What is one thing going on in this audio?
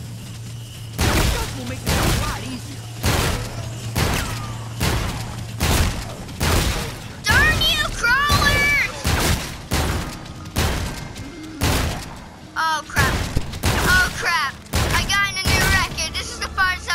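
A shotgun fires in loud, repeated blasts.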